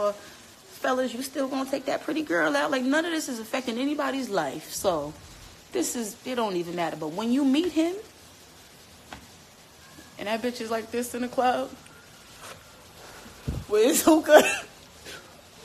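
A young woman talks casually and close to a phone microphone.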